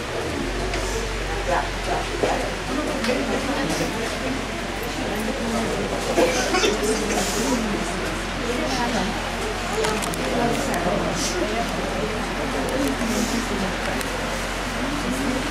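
A crowd of men and women murmur quietly close by.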